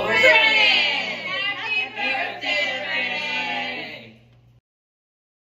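A family sings together loudly and cheerfully, close by.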